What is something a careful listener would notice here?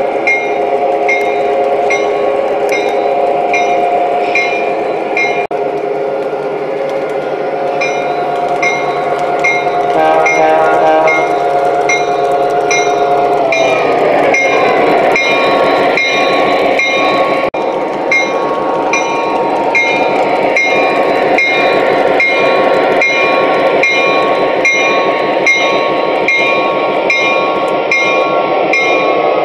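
Small train wheels click in a steady rhythm over rail joints.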